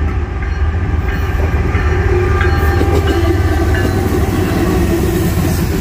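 A diesel locomotive engine roars loudly as it passes.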